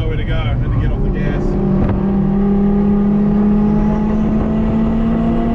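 A car engine revs up as the car speeds up.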